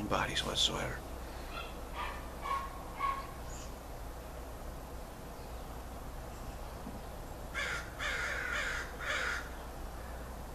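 A middle-aged man speaks calmly and briefly, close to a microphone.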